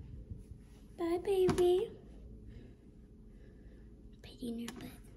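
A young girl speaks close by in short, high bursts.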